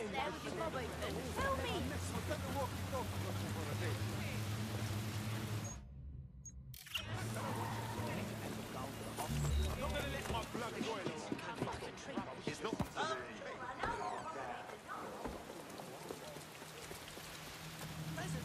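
Footsteps patter on wet pavement.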